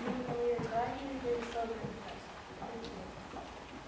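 A young woman speaks into a microphone.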